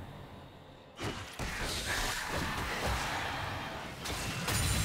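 Video game spells whoosh and crackle during a fight.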